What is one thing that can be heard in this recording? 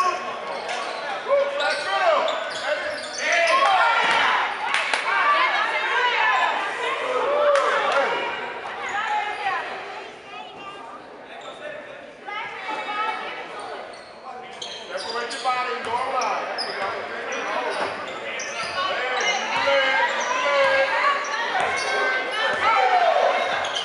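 Several men and boys shout and call out in an echoing gym.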